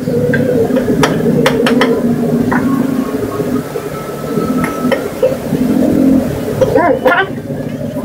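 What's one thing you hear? Metal cutlery clinks against a plate.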